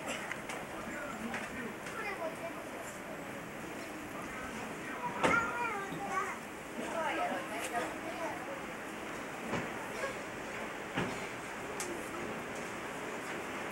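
Several adult men and women talk nearby amid a busy murmur.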